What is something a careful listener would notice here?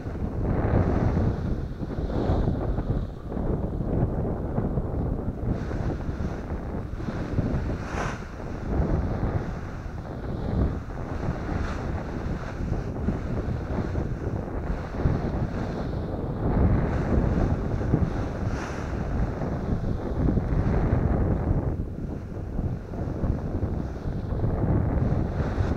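Strong wind buffets and roars outdoors.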